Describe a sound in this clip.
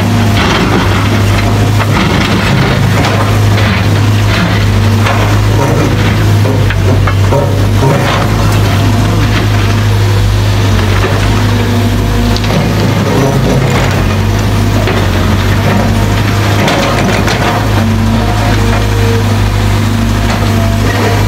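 A diesel excavator engine rumbles under load.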